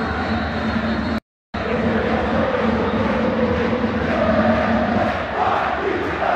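A large stadium crowd roars and chants loudly all around.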